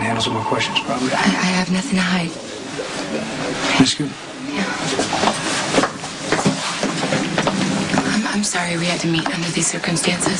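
A woman speaks in surprise.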